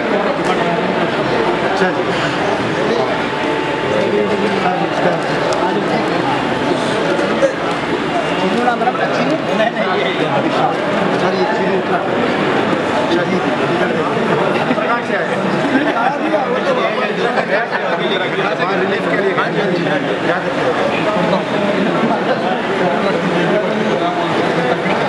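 A crowd of men chatter all around in a busy indoor hall.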